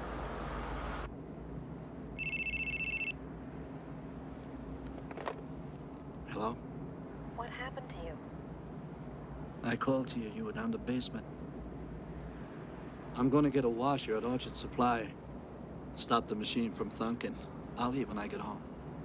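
A car engine hums steadily inside a car.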